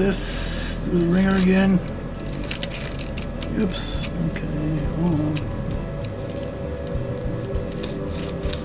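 A plastic tool clicks and taps against small metal rails.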